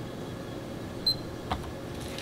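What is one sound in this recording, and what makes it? An electronic meter gives a short, high beep.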